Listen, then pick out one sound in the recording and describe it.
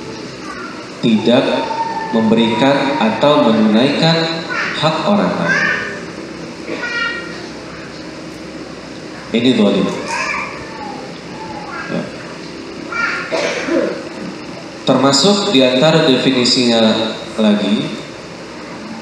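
A man speaks calmly into a microphone, heard over a loudspeaker.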